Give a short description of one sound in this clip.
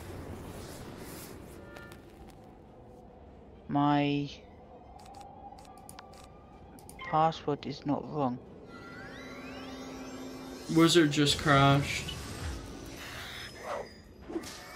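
Magical spell effects whoosh and crackle.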